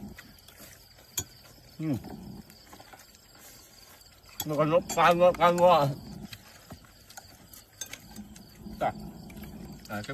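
Spoons clink against plates.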